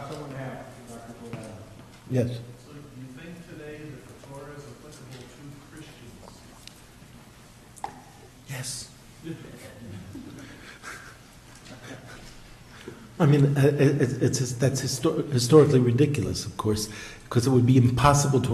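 A man speaks through a microphone, calmly at first and then with animation.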